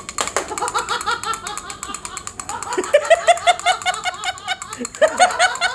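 A toy plays a bright, bouncing electronic tune.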